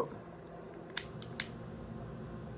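A lighter clicks.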